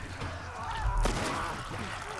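A single gunshot cracks out.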